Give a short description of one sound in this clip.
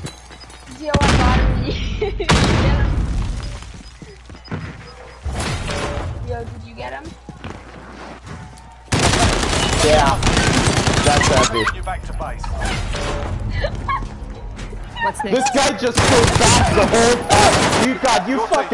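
A gun fires in loud rapid bursts.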